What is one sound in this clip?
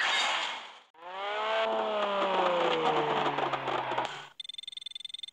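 A sports car engine revs loudly and then drops to a deep idle.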